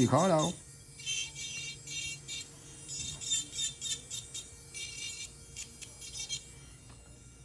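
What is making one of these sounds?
A drill bit scrapes and grinds against a fingernail in short bursts.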